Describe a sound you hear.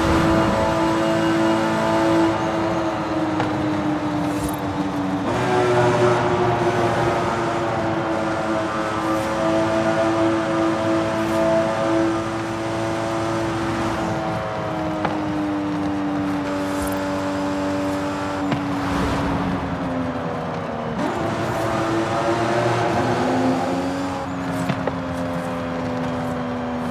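Tyres hum on smooth pavement.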